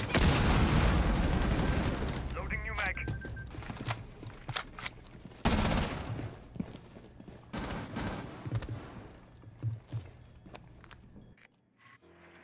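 Gunshots ring out in sharp bursts.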